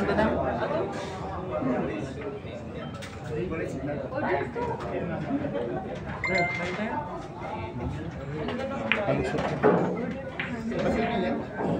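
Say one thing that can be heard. A crowd of people chatters in a large hall.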